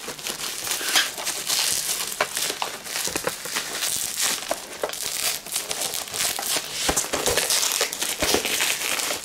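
Hands crinkle and rustle plastic bubble wrap close by.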